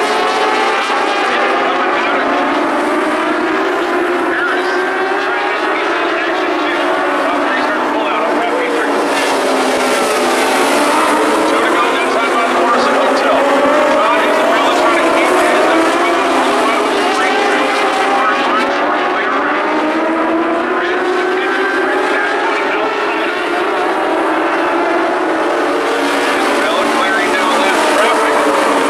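Several race car engines roar and whine, rising and falling in pitch.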